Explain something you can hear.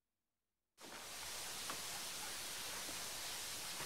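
A steam locomotive hisses steadily.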